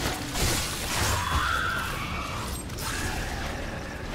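A gun fires with a loud blast.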